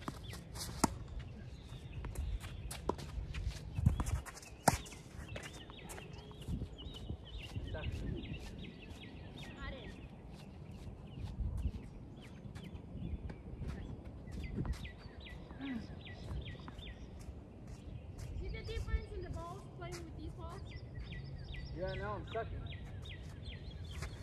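Sneakers squeak and scuff on a hard court.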